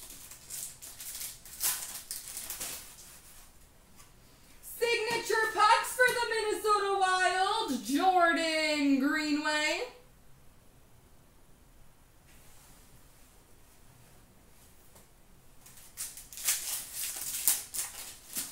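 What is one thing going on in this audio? A foil card pack wrapper crinkles and tears as hands open it.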